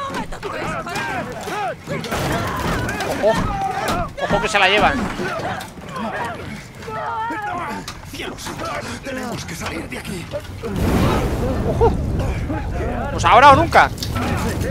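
A man shouts in panic.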